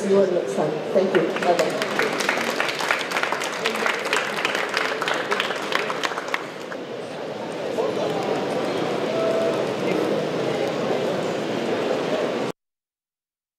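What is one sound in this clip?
Many people chatter in a large, echoing hall.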